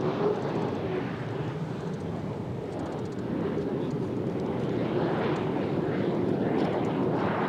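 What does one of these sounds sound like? Spray hisses and rushes off the water behind a racing boat.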